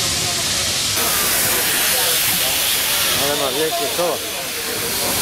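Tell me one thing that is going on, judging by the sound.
Steam hisses loudly from a locomotive.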